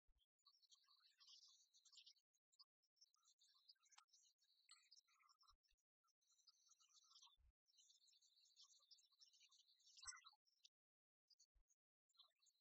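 Game pieces tap and slide on a wooden table.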